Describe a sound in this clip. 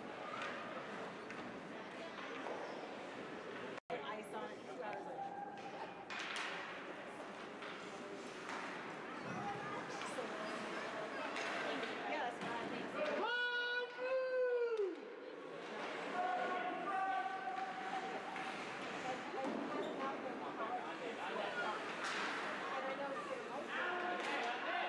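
Skates scrape and carve across ice in a large echoing rink.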